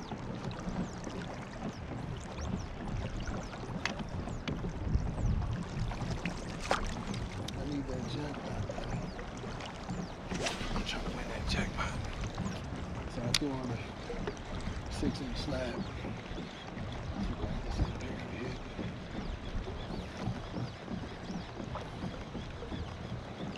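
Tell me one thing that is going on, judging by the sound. Water laps against a small boat.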